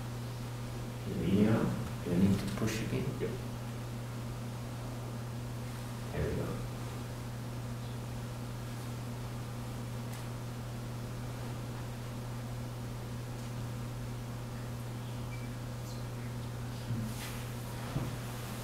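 A man speaks briefly and calmly in a large room, heard from a distance.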